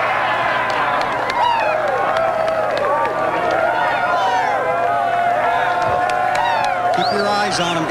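Men laugh and yell with excitement up close.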